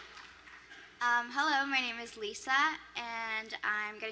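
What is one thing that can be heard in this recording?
Another young woman speaks with animation into a microphone.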